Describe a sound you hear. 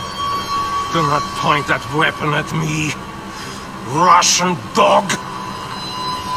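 A man speaks in a low, calm voice, close by.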